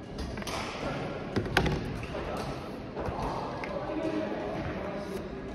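A man speaks calmly close by in a large echoing hall.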